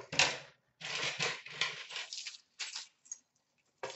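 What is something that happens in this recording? A bunch of keys jingles as it is picked up.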